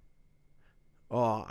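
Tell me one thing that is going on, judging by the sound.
A man speaks close into a microphone.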